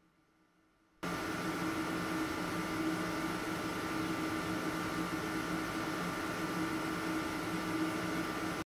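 An electric locomotive rolls along the rails.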